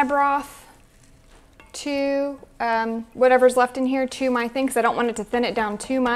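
A spoon scrapes and stirs in a pot.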